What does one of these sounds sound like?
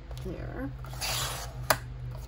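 A paper trimmer's blade slides along and cuts through paper.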